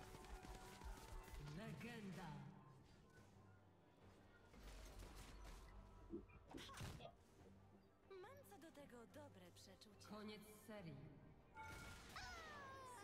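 Game sound effects clash and whoosh during a fight.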